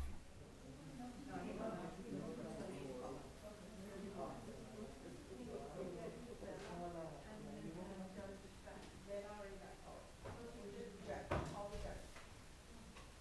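Several adults talk quietly among themselves, a little way off.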